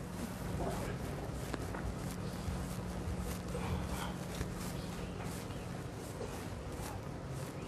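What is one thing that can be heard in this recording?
A felt eraser rubs across a chalkboard.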